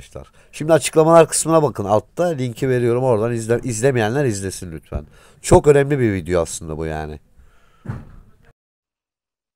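A middle-aged man speaks with animation, close to a microphone.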